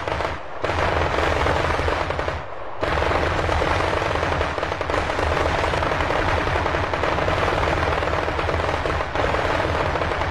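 Anti-aircraft guns fire in rapid bursts.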